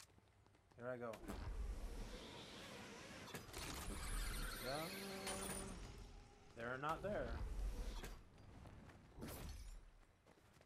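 A zipline whirs and rattles as a game character rides along it.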